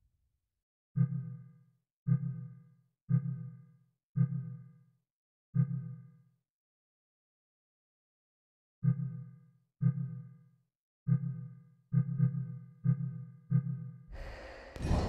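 Soft menu clicks chime one after another.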